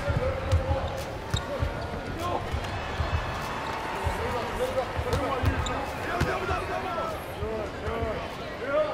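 A crowd murmurs steadily in a large arena.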